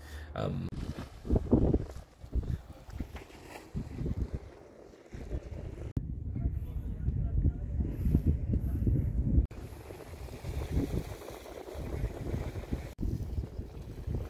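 Gentle waves lap against rocks.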